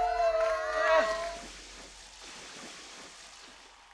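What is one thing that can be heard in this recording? Water splashes down onto a man from buckets.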